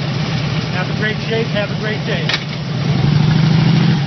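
A motorcycle engine idles and rumbles loudly nearby.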